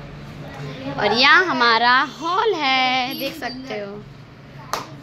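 Young girls shout and squeal excitedly nearby.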